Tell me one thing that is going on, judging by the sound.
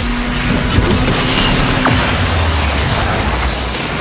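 A car crashes into another car with a loud metallic bang.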